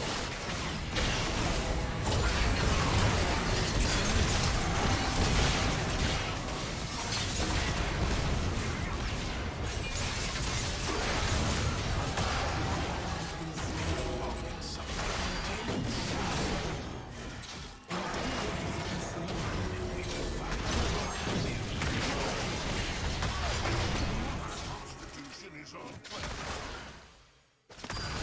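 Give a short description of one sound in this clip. Game spell blasts and clashing combat effects crackle and boom.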